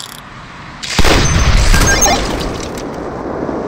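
A rifle fires a single loud shot that echoes and fades.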